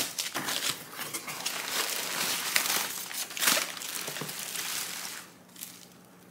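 Crumpled paper packing rustles and crackles.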